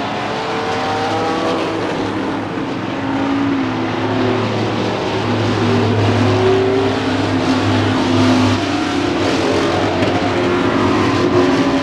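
Race car engines roar loudly as they speed around a track.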